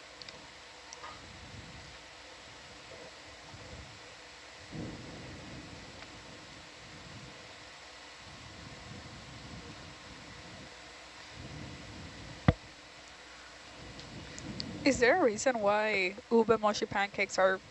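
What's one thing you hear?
Water rumbles softly and steadily underwater.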